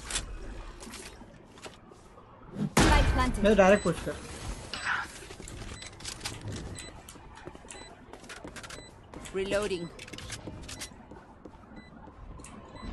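Gunshots crack in quick bursts from a video game.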